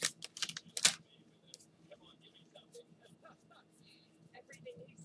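Trading cards softly click and rustle as they are shuffled.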